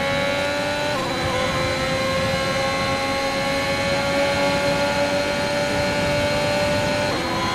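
Tyres rumble over the track.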